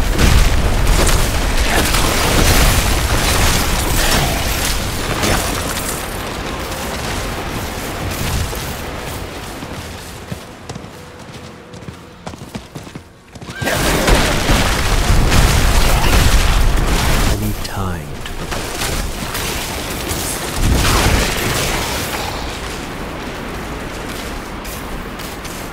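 Game spells crackle and explode in a fast fight.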